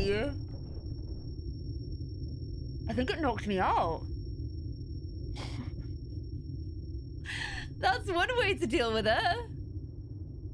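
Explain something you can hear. A young woman talks and squeals with animation into a close microphone.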